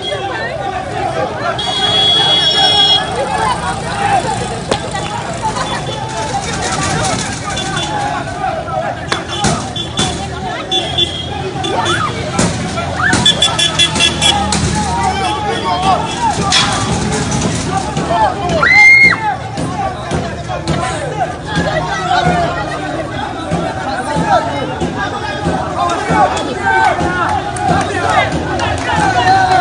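A crowd of people shouts and calls out outdoors.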